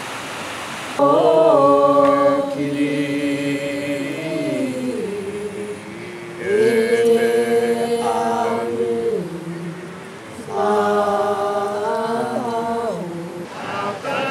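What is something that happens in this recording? An elderly man chants in a slow, drawn-out voice outdoors.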